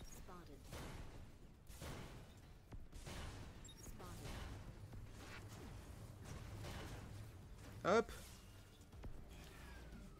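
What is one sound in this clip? Laser weapons zap and fire in quick bursts.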